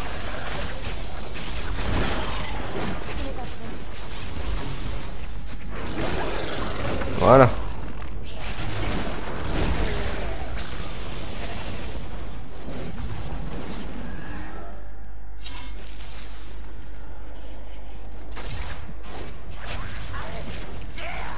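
Spell blasts and weapon hits crackle and boom in a fight.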